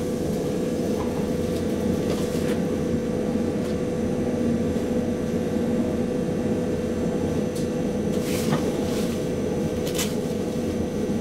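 A train rumbles steadily along the tracks with a low hum.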